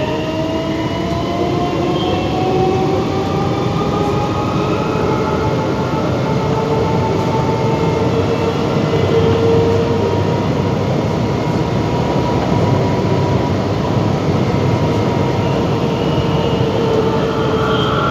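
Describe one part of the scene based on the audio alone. A train rumbles along the rails through a tunnel.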